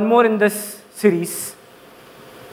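A man speaks briefly through a microphone, heard over loudspeakers in a large hall.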